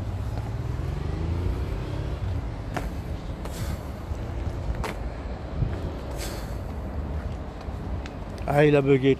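Footsteps tap on a hard path.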